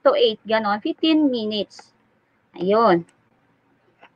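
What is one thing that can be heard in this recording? A woman speaks with animation through a microphone on an online call.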